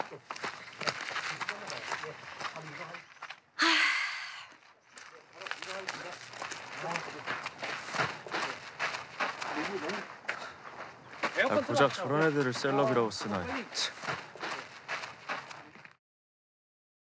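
A young woman speaks with surprise.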